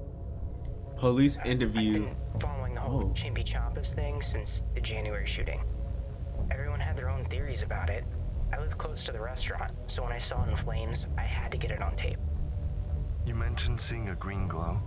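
A young man speaks calmly close to a microphone.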